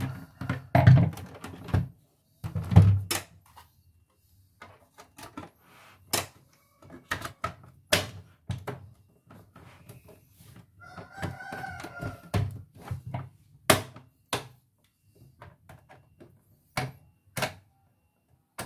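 Plastic parts knock and click together as they are handled.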